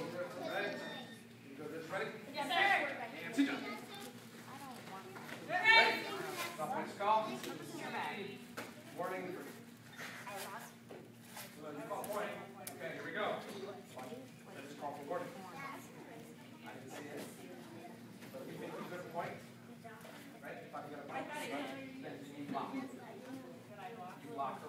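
Children chatter and call out in a large echoing hall.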